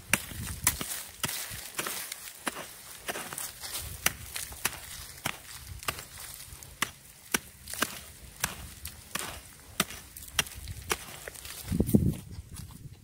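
A small hoe chops rhythmically into dry soil.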